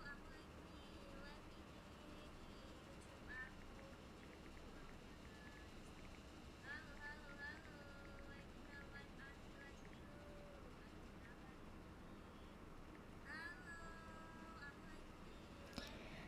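A young woman speaks softly and close into a microphone.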